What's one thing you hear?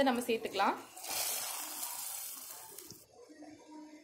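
Hot oil hisses loudly as it is poured into a pot of liquid.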